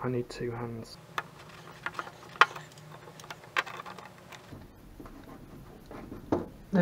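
Small metal parts click and rattle under a tool.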